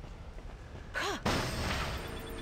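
An explosion bursts with a loud whoosh.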